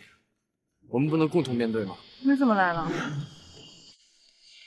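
A young man pleads earnestly.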